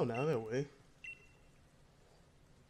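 A short electronic menu chime sounds.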